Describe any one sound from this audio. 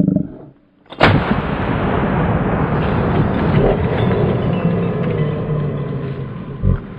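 A shotgun fires a single loud blast that echoes outdoors.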